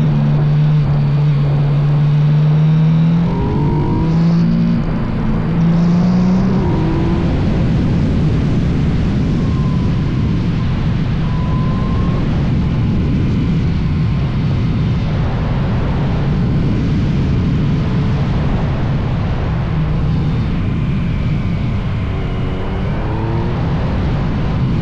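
A motorcycle engine revs up and down as it accelerates through bends.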